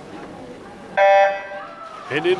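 An electronic starting beep sounds loudly.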